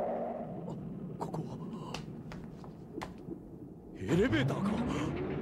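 A man speaks in a low, puzzled voice.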